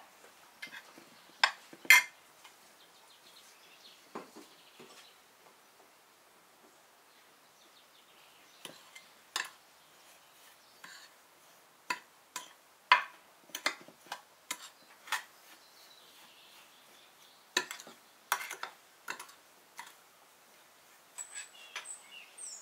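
A metal spoon clinks and scrapes against a glass dish.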